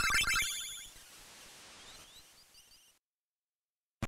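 A short chiptune jingle chimes and fades away.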